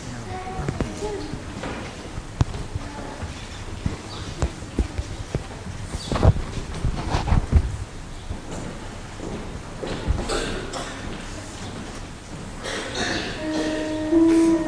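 Footsteps shuffle and knock across a wooden floor in a large echoing hall.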